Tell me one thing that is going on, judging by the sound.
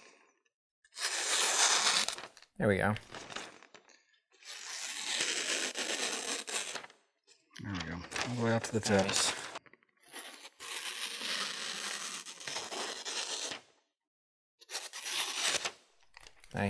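A knife blade slices through paper with a crisp hiss.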